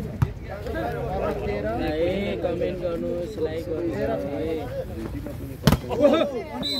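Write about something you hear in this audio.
A volleyball is struck hard with a sharp slap.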